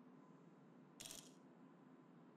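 A sniper rifle scope clicks as it zooms in.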